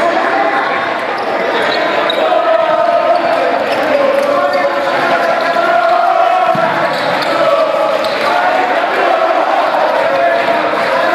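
Young men chant loudly together while jumping in a huddle.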